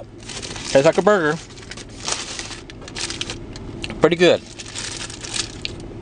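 Paper wrapping rustles and crinkles as a burger is handled.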